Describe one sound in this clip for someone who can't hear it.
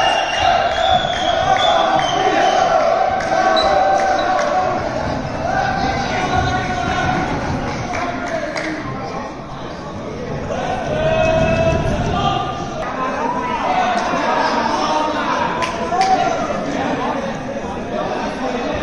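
Young men talk and call out in a large echoing hall.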